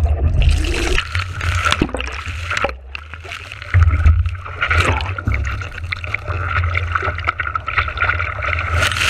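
Waves splash against a board.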